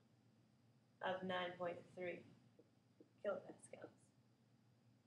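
A woman speaks calmly, as if explaining.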